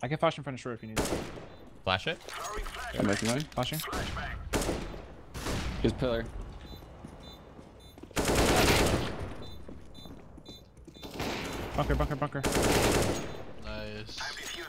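An assault rifle fires in short bursts.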